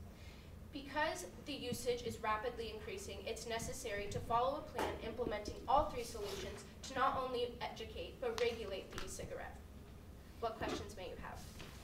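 A young woman speaks calmly to an audience.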